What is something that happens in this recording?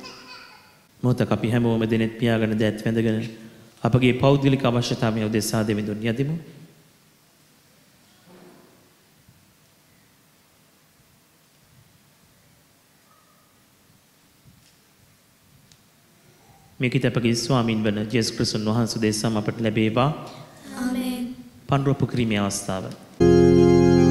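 A man sings through a microphone in an echoing hall.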